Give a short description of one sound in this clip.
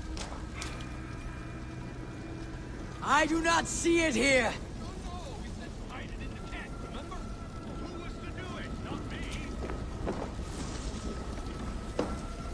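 Fire crackles softly nearby.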